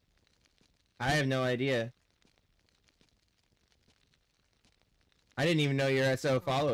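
A young man speaks close to a microphone in short bursts.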